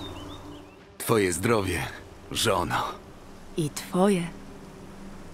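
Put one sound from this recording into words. A man speaks warmly and playfully.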